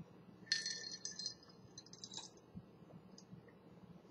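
A man sips a drink from a glass.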